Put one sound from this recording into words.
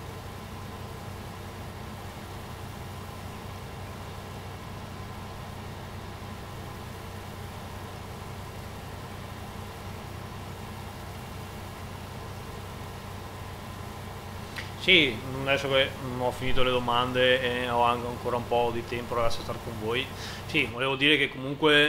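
A harvester engine drones steadily.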